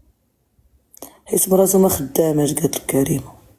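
A woman speaks softly and close to a phone's microphone.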